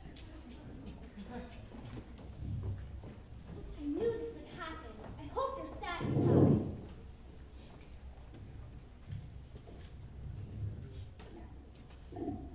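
Young actors speak their lines, heard from a distance in a large hall.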